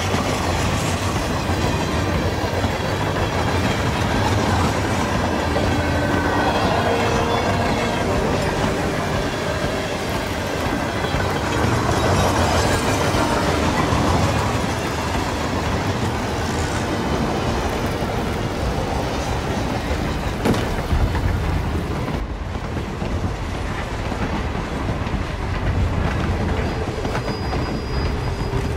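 Wind howls steadily through a snowstorm.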